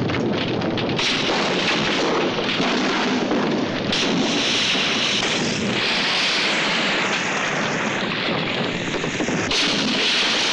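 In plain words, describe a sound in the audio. Explosions boom and blast with a spray of debris.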